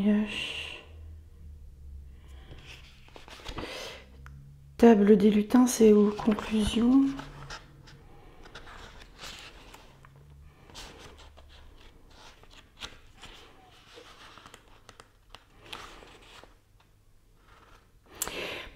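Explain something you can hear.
A young woman reads aloud close to a microphone.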